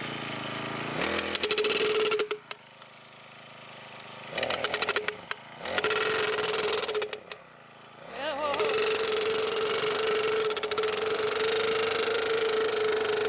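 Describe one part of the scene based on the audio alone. A small engine of a power auger roars in bursts as it drills into the ground.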